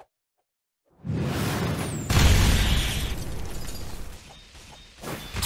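A loud magical blast booms and whooshes.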